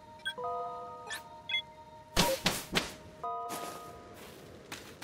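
A soft electronic chime rings out in short bright notes.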